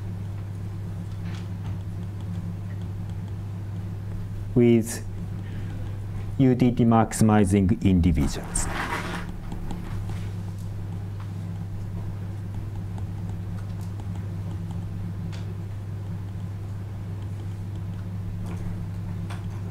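A pen scratches softly on paper.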